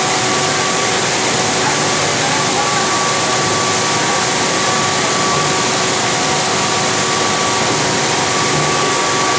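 A heavy stream of slurry gushes and splashes steadily.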